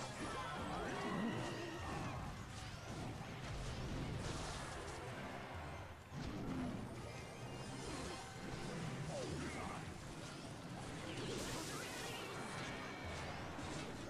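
Game sound effects of battle clashes and spells play.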